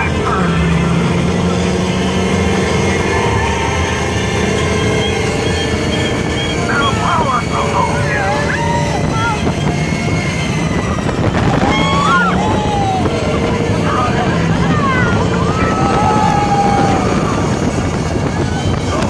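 A ride car hums and rumbles along its track.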